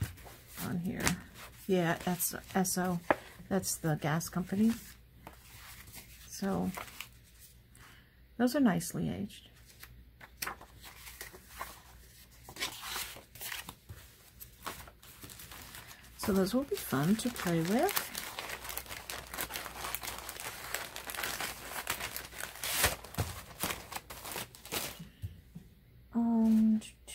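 Paper cards rustle and shuffle as hands handle them.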